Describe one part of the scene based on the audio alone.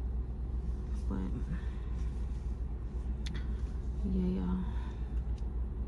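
A young woman speaks briefly and quietly, close by.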